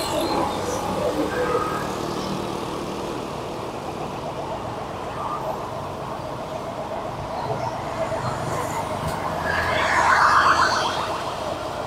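Other motorbikes and traffic pass by on the street.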